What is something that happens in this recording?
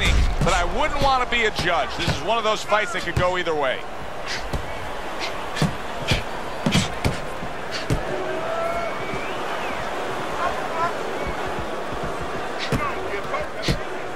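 Boxing gloves thud against a body in sharp blows.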